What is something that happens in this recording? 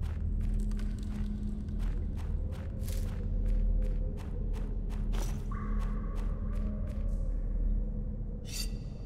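Footsteps crunch at a quick pace.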